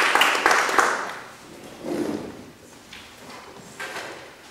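Footsteps tap on a wooden stage.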